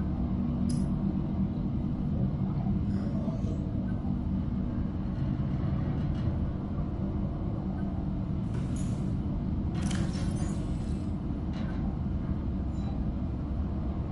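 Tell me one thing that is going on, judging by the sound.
A low engine hum drones steadily.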